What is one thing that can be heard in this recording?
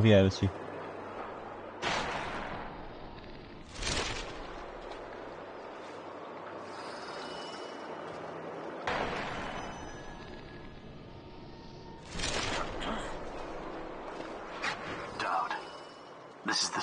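Water laps gently nearby.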